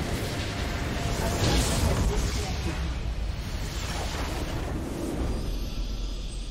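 A game's battle effects crash and explode loudly.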